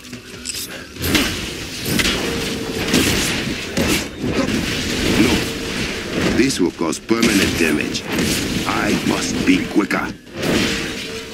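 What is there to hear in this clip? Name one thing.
Sparks crackle and hiss in a burst of energy.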